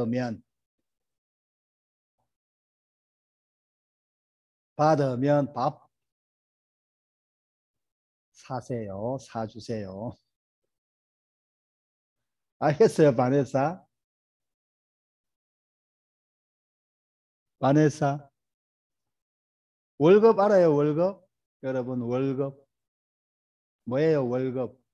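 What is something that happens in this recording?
A middle-aged man speaks calmly and slowly through a microphone, in short phrases with pauses.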